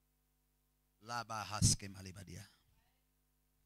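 A man speaks loudly and forcefully into a microphone in an echoing hall.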